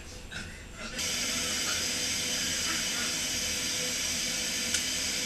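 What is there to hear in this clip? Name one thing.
Air hisses loudly and steadily into the room.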